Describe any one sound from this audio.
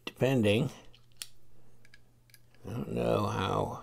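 A screwdriver bit clicks into a metal tool.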